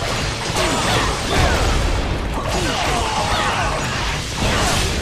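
Swords clash and slash in a busy battle.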